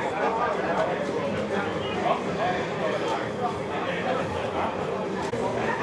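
Game controller buttons click and clatter rapidly.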